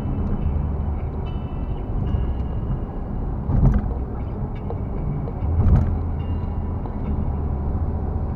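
A car engine hums steadily with road rumble from inside the cabin.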